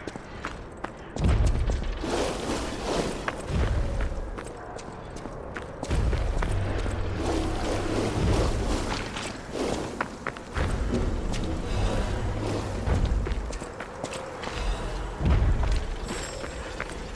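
Heavy footsteps crunch over rough ground.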